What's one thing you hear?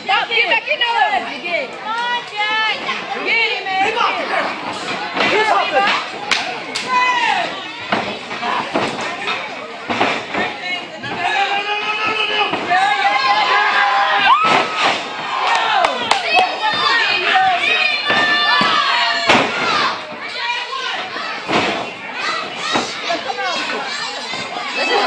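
A crowd of fans cheers and shouts in a large echoing hall.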